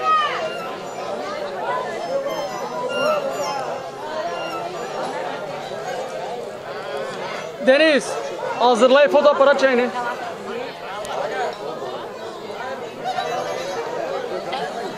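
Men and women chat in a lively crowd outdoors nearby.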